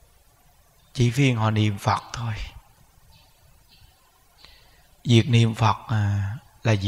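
A man speaks calmly and closely into a microphone.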